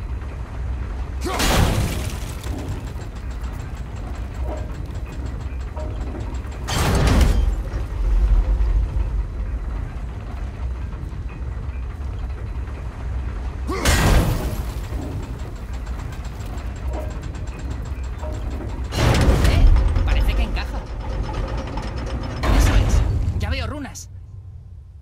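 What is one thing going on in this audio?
A heavy stone wheel rumbles and grinds as it turns.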